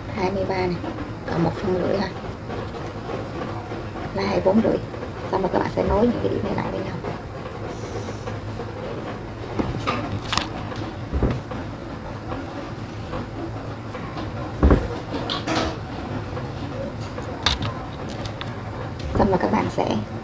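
A pen scratches across paper, drawing lines.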